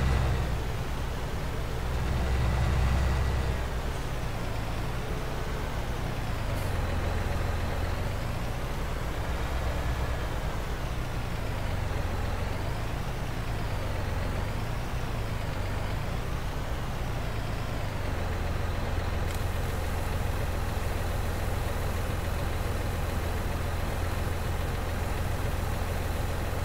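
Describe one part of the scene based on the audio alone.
A tractor engine drones and revs.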